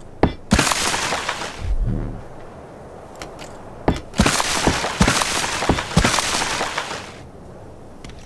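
Metal walls crash and crumble with heavy clangs as they are torn down.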